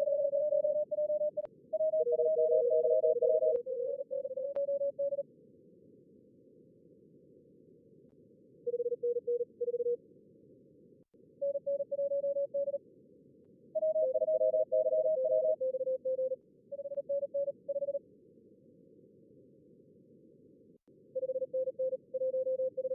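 Short electronic beeping tones sound in bursts over a radio.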